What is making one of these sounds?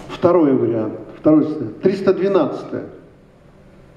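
An elderly man reads aloud slowly through a microphone.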